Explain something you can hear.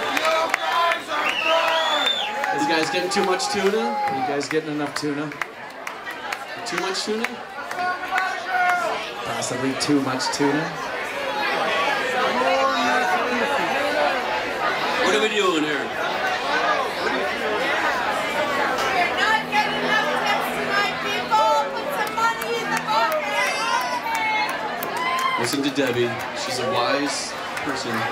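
A crowd of people chatter loudly nearby.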